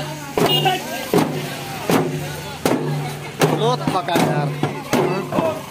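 Men sing and chant together outdoors.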